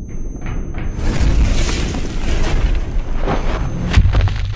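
Wind rushes and roars loudly.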